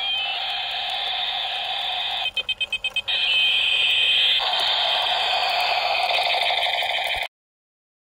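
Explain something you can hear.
A toy helicopter plays a loud, high electronic siren-like tune.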